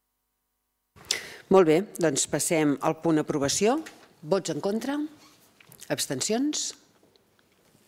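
A middle-aged woman speaks calmly through a microphone.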